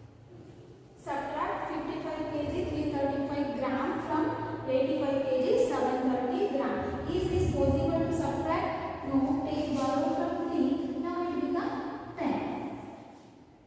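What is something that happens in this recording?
A woman speaks clearly and steadily.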